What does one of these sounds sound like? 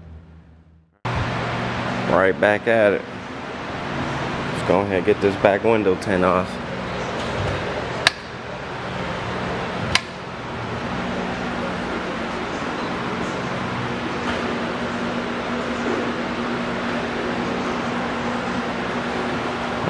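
A machine hums steadily.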